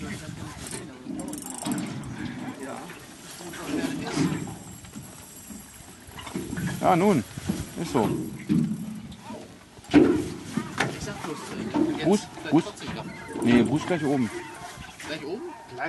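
A fishing reel winds in line.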